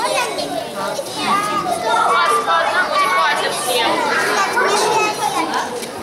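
A young woman talks to the children.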